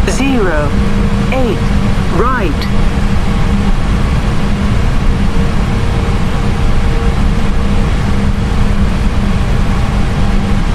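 Jet engines hum steadily inside a cockpit.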